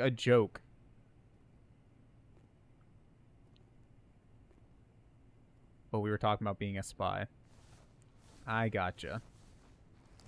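A man talks into a microphone close by, with animation, in short bursts.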